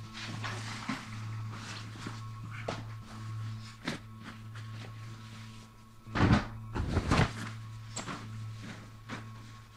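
Bedding rustles and flaps as it is pulled off a bed.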